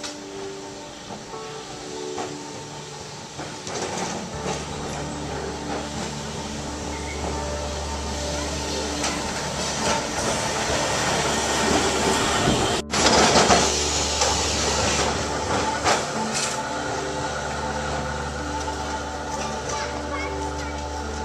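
A tram hums and rumbles along rails as it draws near and passes close by.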